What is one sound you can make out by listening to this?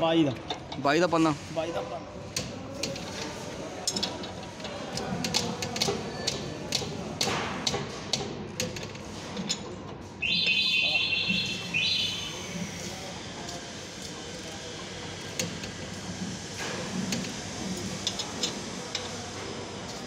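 A metal wrench clinks and ratchets against a bolt.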